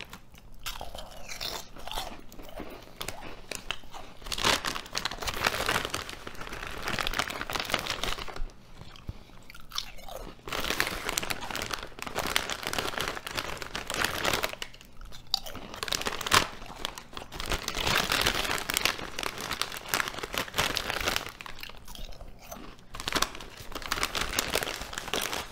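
A chip bag crinkles and rustles.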